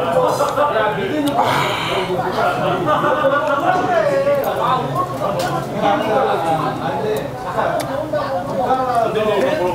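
Metal tongs clink against a grill.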